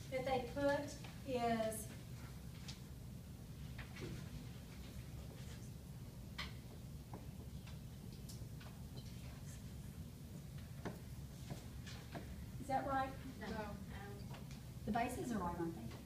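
A woman speaks calmly, a little way off in a room.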